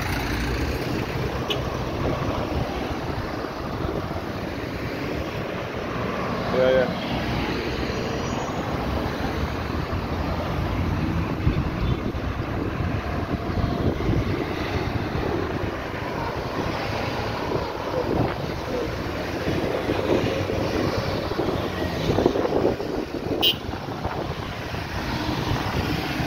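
Cars and vans drive past outdoors.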